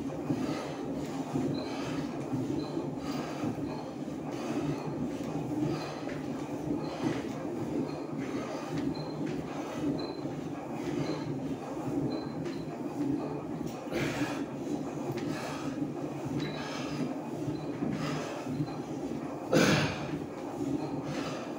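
An elliptical exercise machine whirs and squeaks rhythmically.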